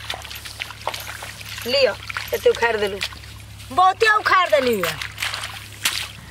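Water splashes softly as hands push seedlings into mud.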